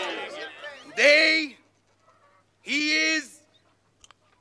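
A man shouts out a toast.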